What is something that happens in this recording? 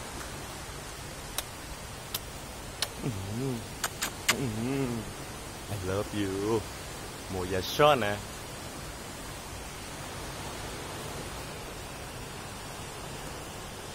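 Waves wash gently onto the shore.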